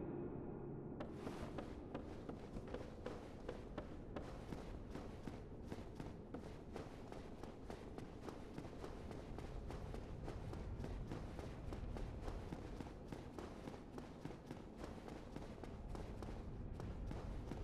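Footsteps patter quickly on wooden and stone stairs.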